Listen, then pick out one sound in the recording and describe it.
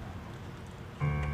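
A keyboard sounds a held chord.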